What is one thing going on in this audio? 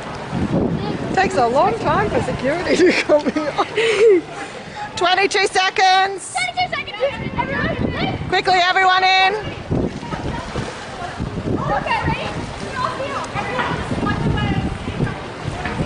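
Young girls talk and laugh with excitement nearby.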